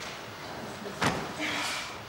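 A young woman lands on a gym mat with a soft thud.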